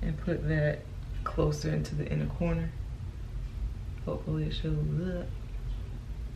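A young woman speaks calmly and close.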